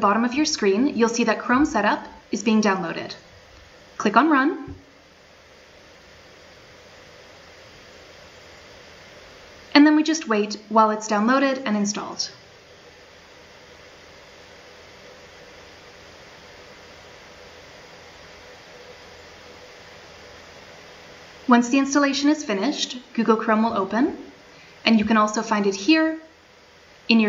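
A young woman speaks calmly into a close microphone, in bursts with pauses.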